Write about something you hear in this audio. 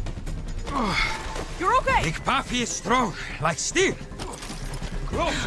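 A man speaks in a gruff, boastful voice.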